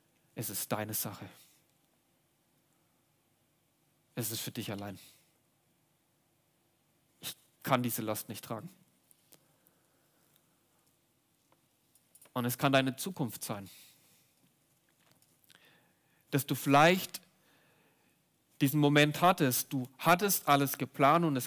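A young man speaks calmly and thoughtfully into a microphone, with long pauses.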